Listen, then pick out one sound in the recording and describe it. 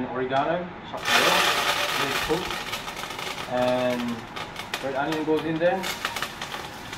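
Food sizzles in a hot pot.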